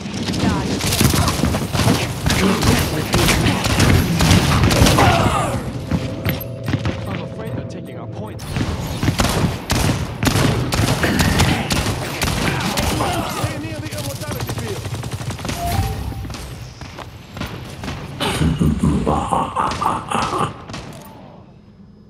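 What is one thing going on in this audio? Guns fire in loud, rapid blasts.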